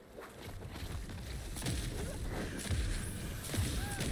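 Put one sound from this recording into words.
Flames roar in a blast.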